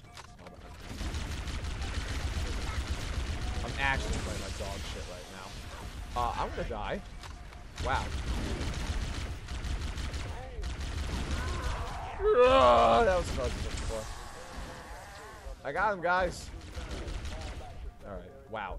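A plasma rifle fires rapid crackling bursts.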